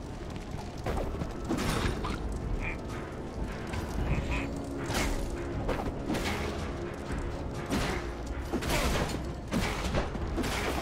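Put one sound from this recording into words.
Sword blows and impacts clash in a game fight.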